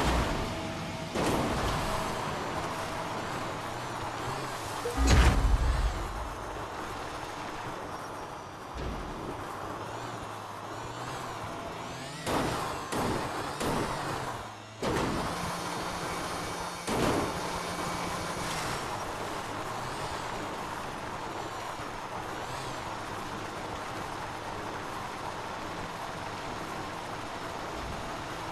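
A motorbike engine hums steadily as the bike rides over rough ground.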